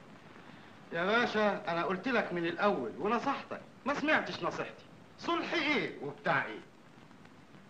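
A man speaks firmly and with emphasis, close by.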